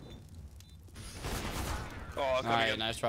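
An explosion booms loudly and roars.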